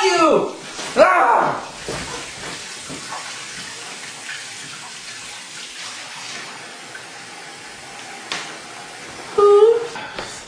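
Water runs steadily from a tap into a sink.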